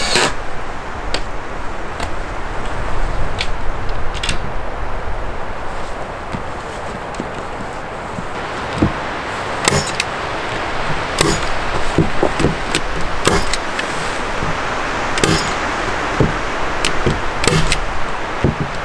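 A wooden board knocks and taps against a frame.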